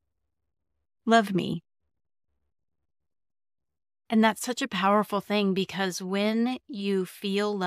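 A woman speaks warmly and clearly into a close microphone.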